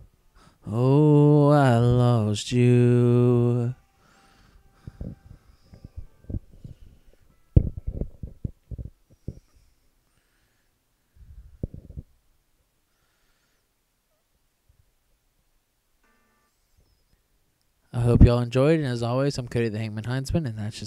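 A young man sings loudly into a microphone, in long held notes.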